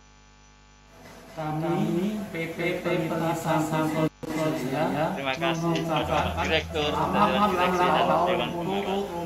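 A middle-aged man speaks calmly and steadily, close to a microphone.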